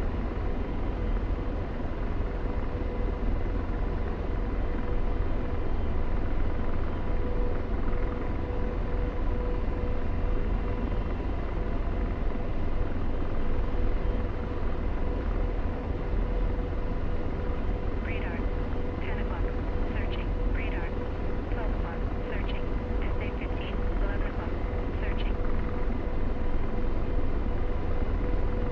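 A helicopter engine and rotor drone steadily from inside the cockpit.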